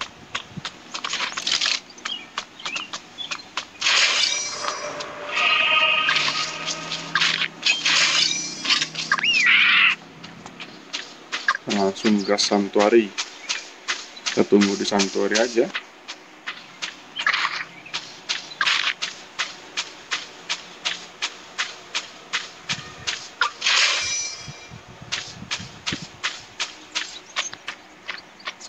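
Footsteps patter quickly and steadily across the ground.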